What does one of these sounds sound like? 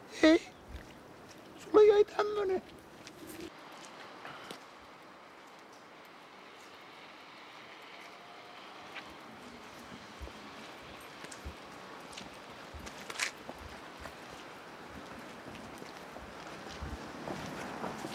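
Footsteps slap on wet pavement.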